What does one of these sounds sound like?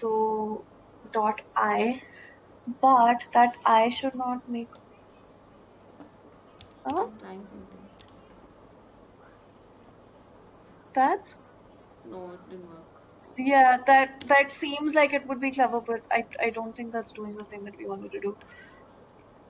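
A young woman talks over an online call, in short bursts with pauses.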